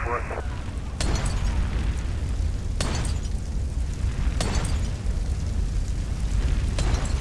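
Explosions boom one after another.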